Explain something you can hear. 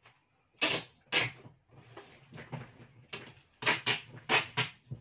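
Cardboard scrapes and rustles as a large box is handled close by.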